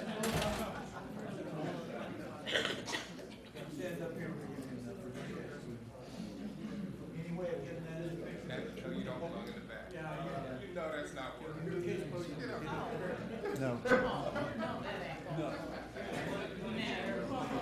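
A room full of men chatter in low voices.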